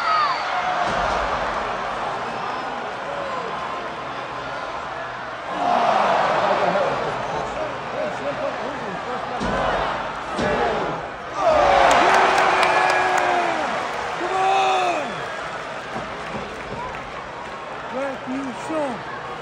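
A large crowd cheers and shouts in a big echoing arena, swelling loudly at times.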